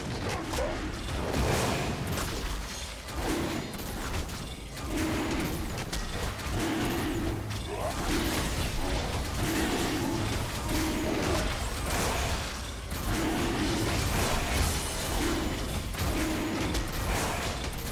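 Magic blasts and weapon hits clash rapidly in a fierce fight.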